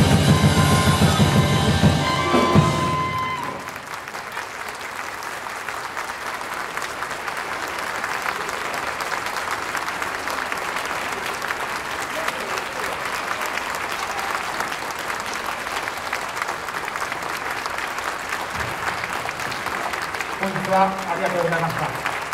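A brass band plays a lively tune loudly.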